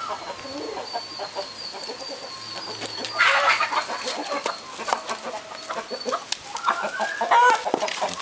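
A dog noses a hard round object that thuds and rolls along the ground.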